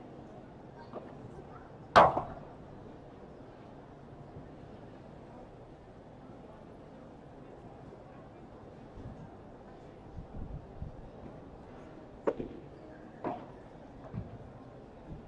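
Padel rackets strike a ball with sharp hollow pops.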